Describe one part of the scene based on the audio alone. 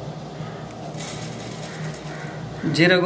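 Small seeds pour with a soft hiss into a metal tray.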